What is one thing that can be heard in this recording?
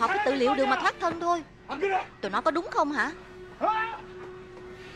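A young woman cries out in distress.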